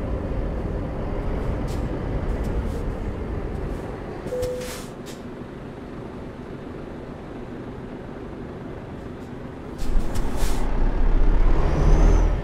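A truck engine rumbles steadily, idling low before revving up again.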